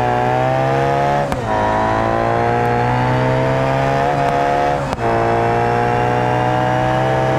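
A sports car engine roars at high revs, rising in pitch and dropping briefly with each gear shift.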